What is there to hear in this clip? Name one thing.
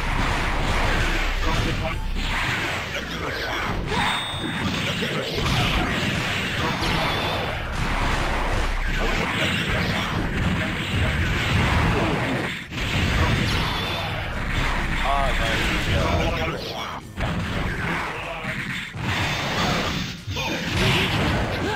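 Energy beams blast and crackle loudly.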